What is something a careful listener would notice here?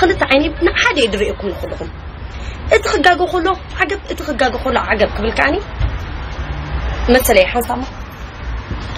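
A young woman speaks with animation, close to a phone microphone.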